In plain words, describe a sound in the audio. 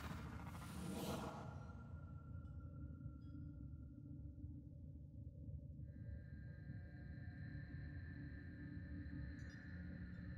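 A spacecraft's engine hums low and steady.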